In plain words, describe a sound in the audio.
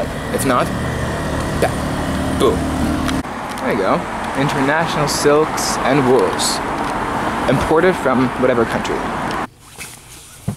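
A young man talks casually, close by, outdoors.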